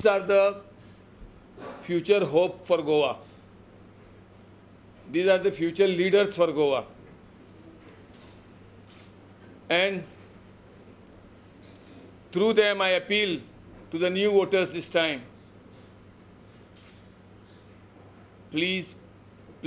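A middle-aged man speaks emphatically into a microphone, in short bursts with pauses.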